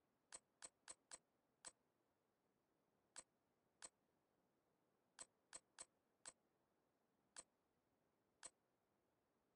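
Short menu clicks tick one after another, then stop.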